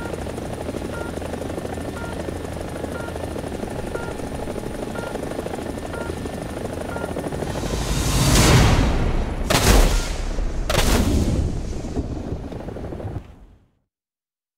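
A helicopter's rotor and engine drone loudly and steadily, then swell before cutting off.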